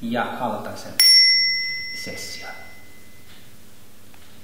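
A small bell rings once with a clear tone and slowly fades.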